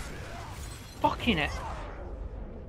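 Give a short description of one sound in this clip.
A burst of energy explodes with a rumble.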